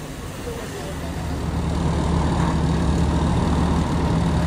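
A fire engine's motor rumbles steadily nearby.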